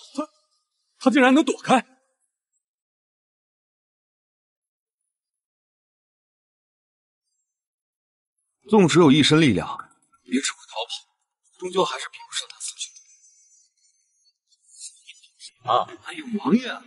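A young man speaks in a tense voice.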